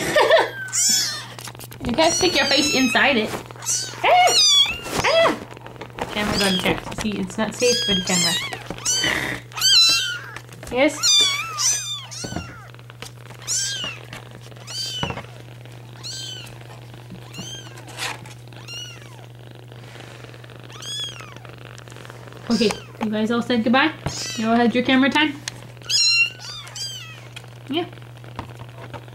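Kittens mew loudly and repeatedly close by.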